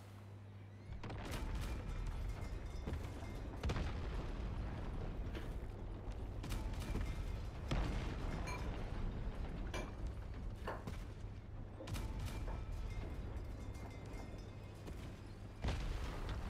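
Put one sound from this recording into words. Heavy guns fire in loud bursts of shots.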